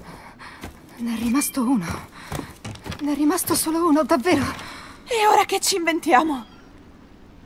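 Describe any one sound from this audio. A young woman asks questions with surprise, close by.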